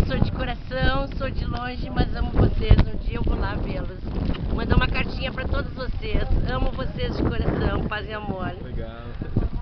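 A middle-aged woman speaks cheerfully close by.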